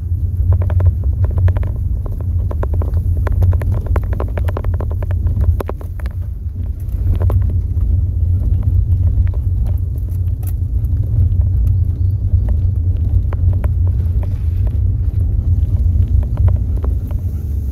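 Wind rumbles against a microphone while moving through the open air.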